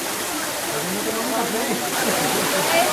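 A stream rushes over rocks.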